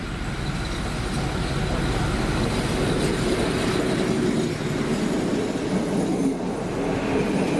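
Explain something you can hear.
A diesel locomotive rumbles past.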